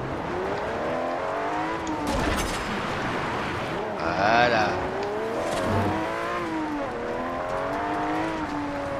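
A sports car engine revs loudly, its pitch rising and dropping with each gear change.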